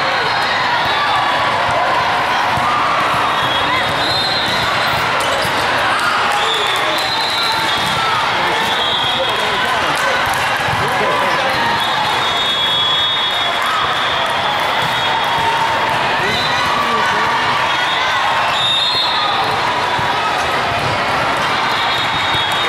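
A crowd of voices chatters and echoes through a large hall.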